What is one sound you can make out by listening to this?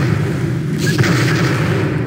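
Rockets whoosh past in rapid succession.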